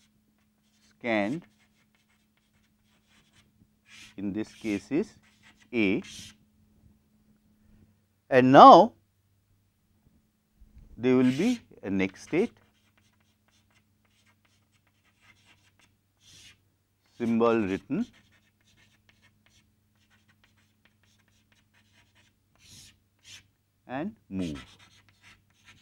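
A man speaks calmly in short phrases, with pauses between them.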